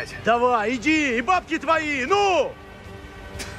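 A man speaks urgently and forcefully up close.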